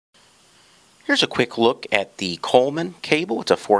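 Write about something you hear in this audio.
A man talks calmly and clearly.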